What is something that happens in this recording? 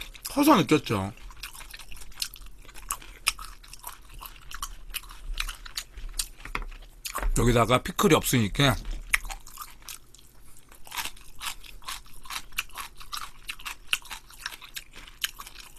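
Chopsticks click and tap against a bowl.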